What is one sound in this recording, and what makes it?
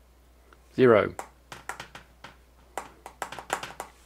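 Fingers tap quickly on a small keyboard.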